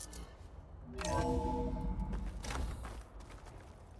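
A heavy metal door rumbles open.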